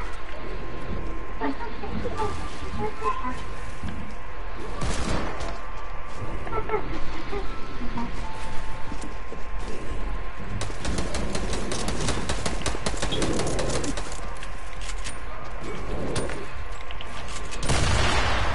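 Game building pieces clack into place in quick bursts.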